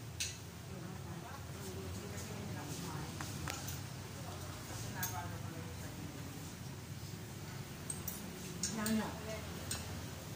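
Several elderly women chat and talk over each other nearby.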